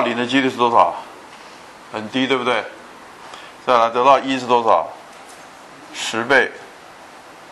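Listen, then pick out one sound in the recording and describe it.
An elderly man speaks calmly into a microphone in short phrases.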